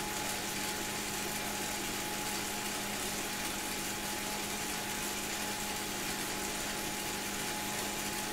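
A bike trainer whirs steadily under fast pedalling.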